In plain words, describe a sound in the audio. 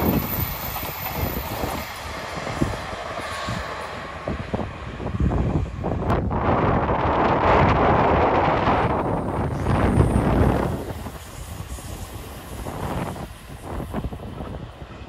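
Waves crash on a rocky shore.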